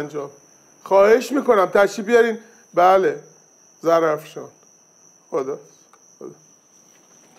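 A middle-aged man speaks into a phone with agitation.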